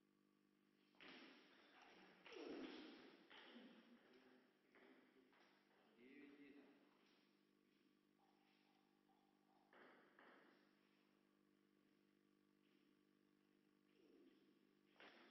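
A table tennis ball clicks against paddles and bounces on a table.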